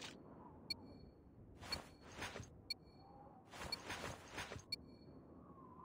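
A countdown timer beeps once every second.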